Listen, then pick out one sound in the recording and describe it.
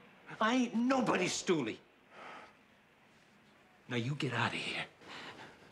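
A man speaks quietly and earnestly up close.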